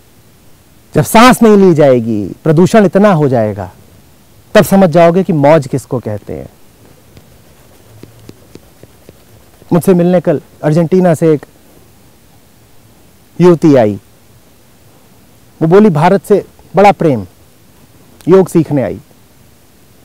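A man speaks close up in short, animated bursts with pauses between them.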